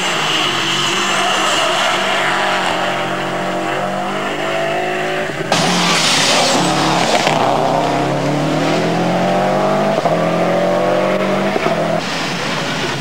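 A rally car engine revs hard, rising and falling in pitch through gear changes.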